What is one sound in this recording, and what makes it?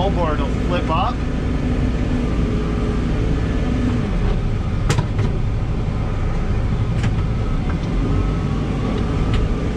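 A heavy engine rumbles steadily from inside a vehicle cab.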